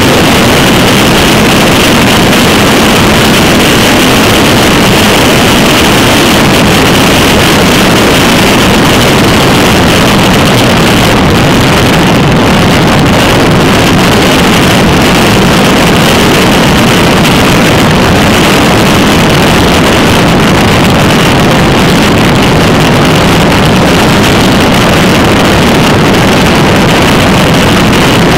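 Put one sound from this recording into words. Wind roars loudly and steadily against a moving bicycle.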